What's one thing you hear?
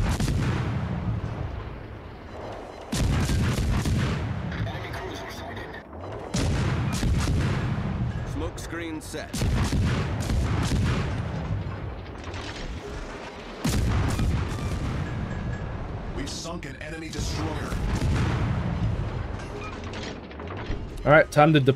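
Heavy naval guns boom in loud repeated salvos.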